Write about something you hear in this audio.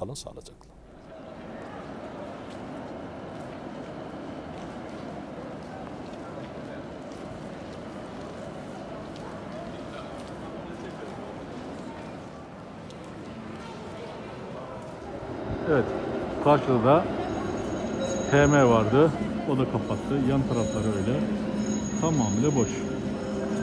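A busy city street hums steadily.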